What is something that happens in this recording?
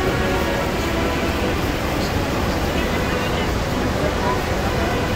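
A huge waterfall roars steadily nearby.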